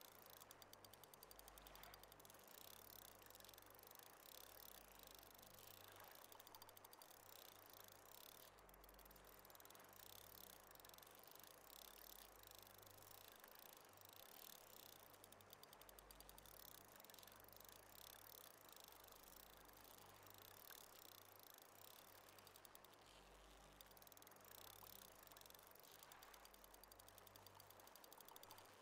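A fishing reel's drag clicks as line pays out.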